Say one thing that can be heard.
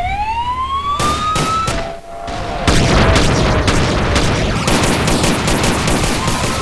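Gunshots fire in rapid bursts, close by.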